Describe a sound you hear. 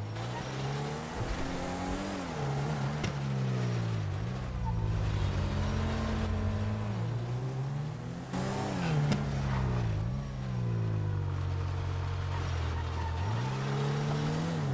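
A car engine idles and revs up and down loudly.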